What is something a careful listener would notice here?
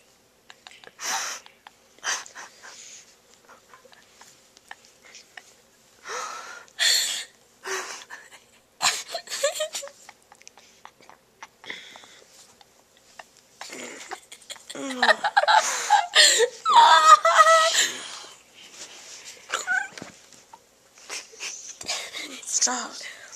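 A young boy mumbles and groans sleepily, very close by.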